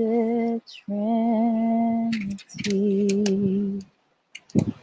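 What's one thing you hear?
A woman sings long, steady notes close to a microphone.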